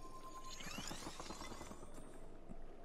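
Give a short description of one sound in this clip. Shimmering magical chimes ring out as ice forms.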